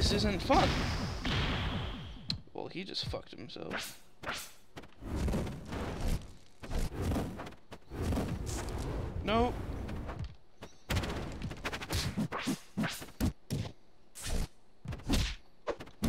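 Video game fighters trade blows with sharp, punchy hit sounds.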